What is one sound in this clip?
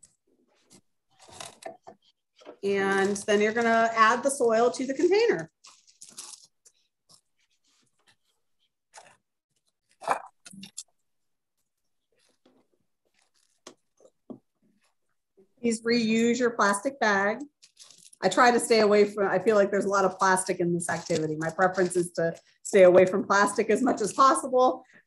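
A plastic bag crinkles in hands.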